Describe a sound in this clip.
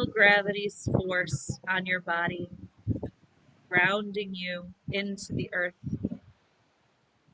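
A woman speaks calmly and close by, through a microphone.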